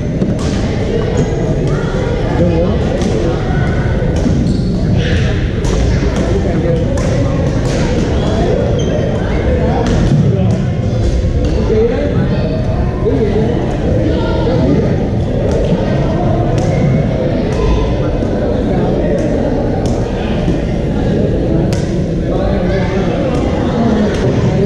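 Shuttlecocks are hit with rackets in sharp pops.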